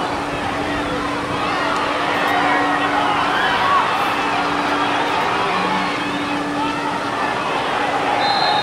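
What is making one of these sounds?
A crowd of spectators calls out and cheers in an open stadium.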